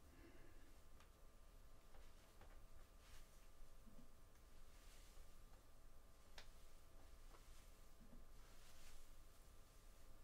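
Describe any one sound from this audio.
A comb scrapes through thick hair in short strokes.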